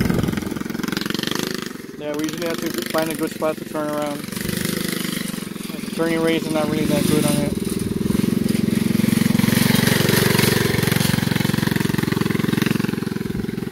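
A small kart engine revs up and down as the kart drives off across dirt.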